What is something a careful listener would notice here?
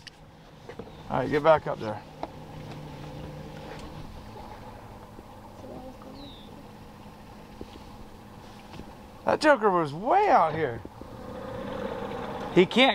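Water laps softly against a boat moving through the water.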